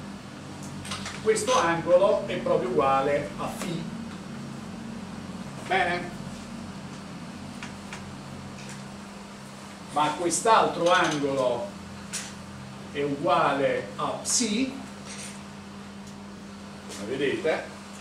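An elderly man speaks calmly, lecturing.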